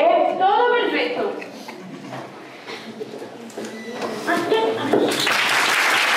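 A young girl speaks into a microphone, heard through loudspeakers in a hall.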